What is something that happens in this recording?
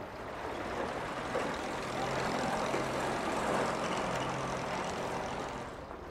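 A car engine idles with a low hum.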